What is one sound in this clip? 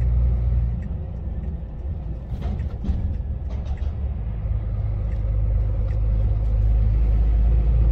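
Tyres hum on a road.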